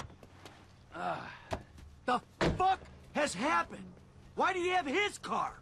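Another man answers tensely.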